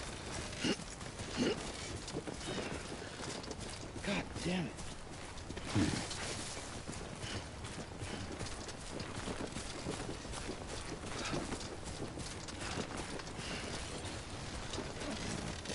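Footsteps tread through grass over uneven ground.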